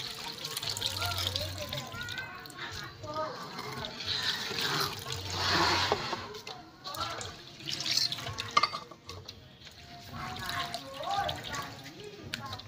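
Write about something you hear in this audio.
Water splashes and sloshes as hands wash meat in a metal bowl.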